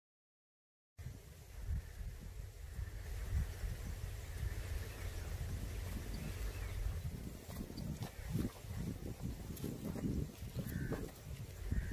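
A mongoose scuffles with a snake in dry dirt.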